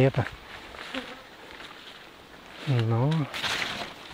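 Leafy undergrowth rustles as someone brushes through it.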